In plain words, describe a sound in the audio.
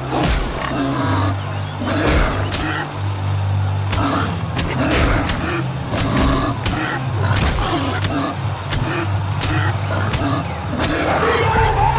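Heavy punches thud rapidly against an animal.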